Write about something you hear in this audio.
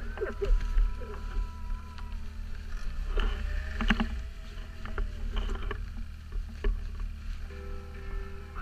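A snowmobile engine rumbles steadily nearby.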